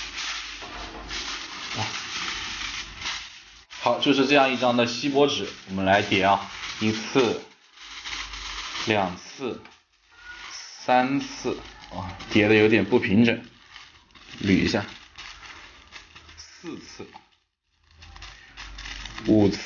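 Aluminium foil crinkles and rustles as it is handled and folded.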